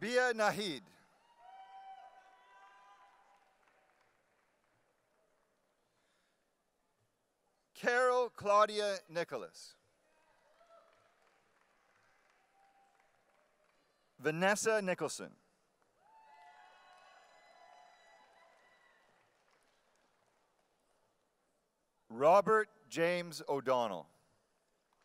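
A man reads out names through a microphone in a large echoing hall.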